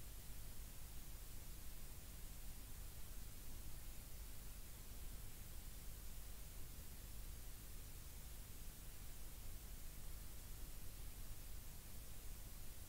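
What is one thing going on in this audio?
A vehicle engine rumbles steadily while driving along.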